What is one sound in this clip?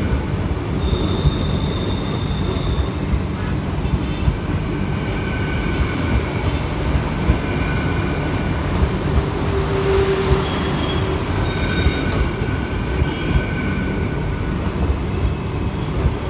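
Train wheels clatter rhythmically over rail joints.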